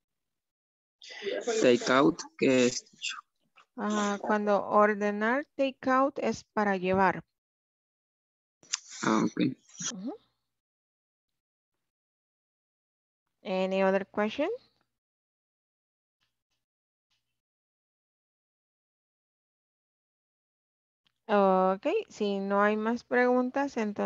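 A woman speaks clearly through an online call, in bursts with pauses.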